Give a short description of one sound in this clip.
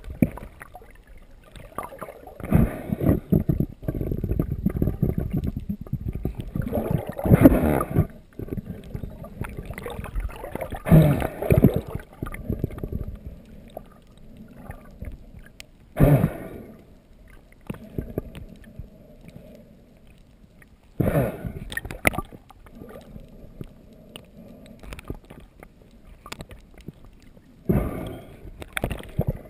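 Water rushes and gurgles in bursts around a swimmer underwater.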